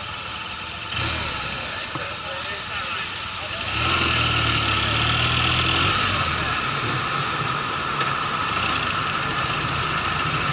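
Wind rushes past as the motorcycle rides along.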